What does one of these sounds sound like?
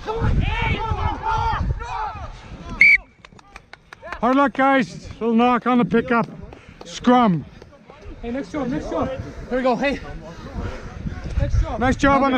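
Several men shout and call out loudly, close by, outdoors.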